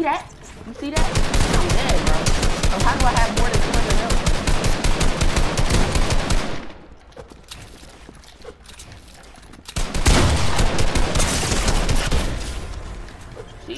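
Rapid game building and editing clicks rattle in quick bursts.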